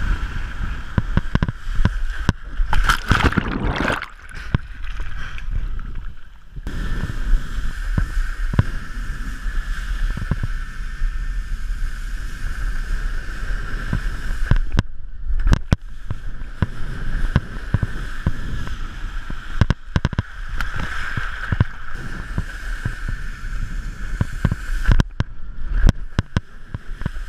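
A wakeboard skims and slaps across water.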